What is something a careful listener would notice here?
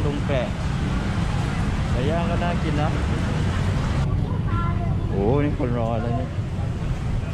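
People speak and call out close by.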